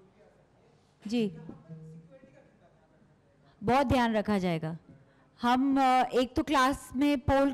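A woman speaks into a microphone with animation, heard through a loudspeaker.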